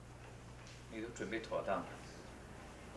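A young man speaks quietly and briefly.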